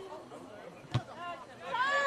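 A ball is kicked with a dull thump.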